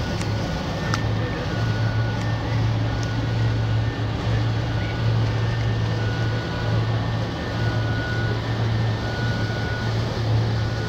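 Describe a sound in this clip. A small motorboat drones as it passes nearby.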